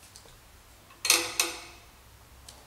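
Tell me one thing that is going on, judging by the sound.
A metal bicycle fork clinks against a metal rod as it is turned.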